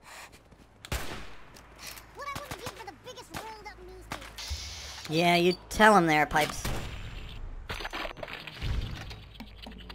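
A rifle fires several sharp shots.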